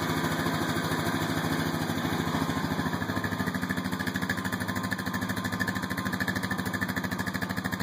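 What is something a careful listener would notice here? A small engine idles with a fast, steady putter.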